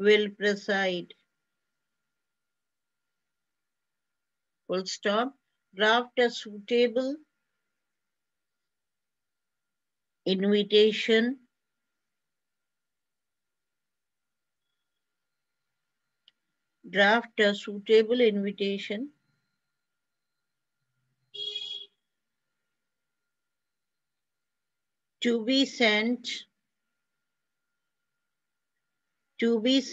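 A woman speaks calmly in short bursts over an online call, with long pauses.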